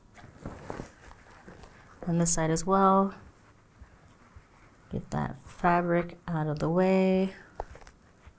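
Plastic clips click onto fabric.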